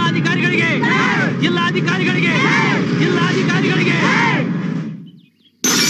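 A large crowd shouts and chants loudly.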